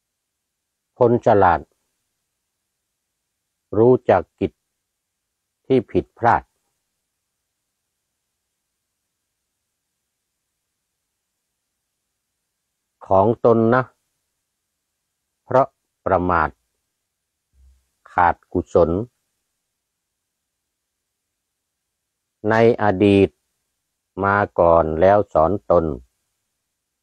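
An elderly man chants slowly in short phrases, close to a microphone, with silent pauses between them.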